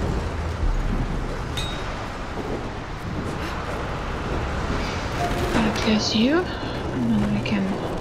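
A young woman grunts with effort while cranking a winch.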